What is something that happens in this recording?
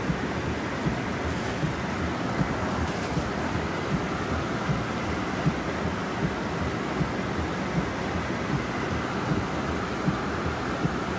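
A car engine hums from inside the cabin.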